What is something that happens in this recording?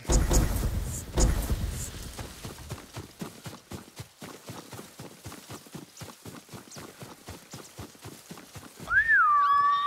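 Footsteps rustle through grass in quick, even steps.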